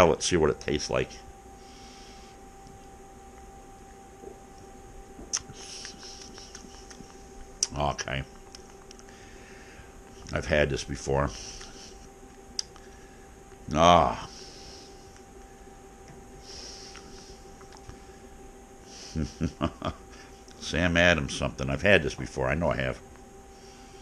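An older man talks calmly, close to the microphone.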